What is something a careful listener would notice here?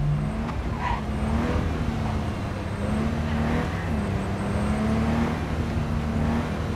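A car engine hums and revs steadily as it drives.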